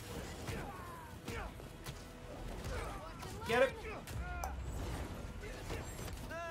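Punches and blows thud in a video game fight.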